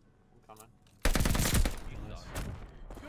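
Gunfire bursts loudly in a video game.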